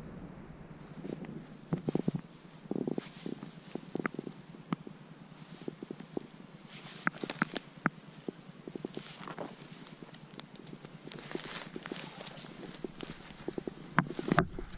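Footsteps crunch and rustle on dry needles and twigs.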